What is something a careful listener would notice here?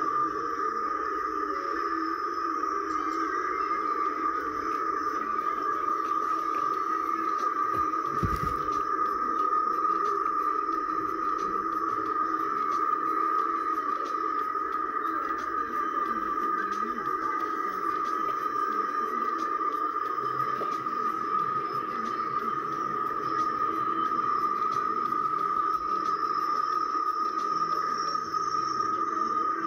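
Several overlapping recordings play at once through small speakers.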